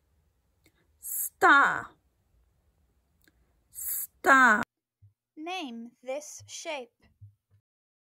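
A young woman speaks brightly and clearly close to the microphone.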